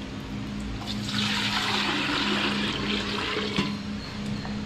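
Liquid pours and splashes into a metal pot.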